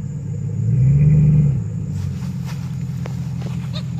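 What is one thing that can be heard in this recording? A pickup truck drives off across grass.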